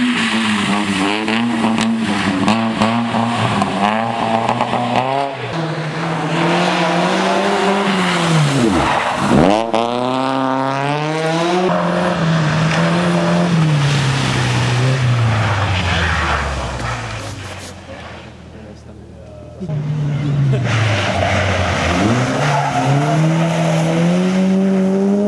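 Rally car engines rev hard and roar past, changing gear.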